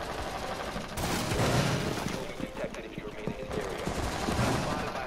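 Gunshots crack in quick bursts close by.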